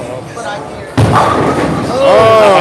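Bowling pins crash and clatter loudly.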